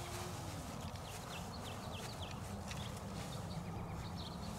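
A small animal squeaks in short, sharp chirps.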